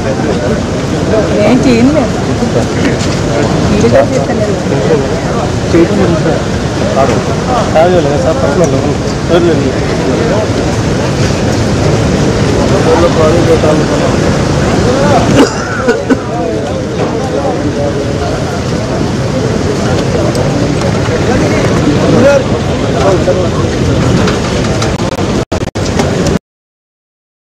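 A crowd of men talk and call out over one another close by.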